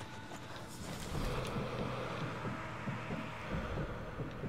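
A vehicle engine rumbles nearby.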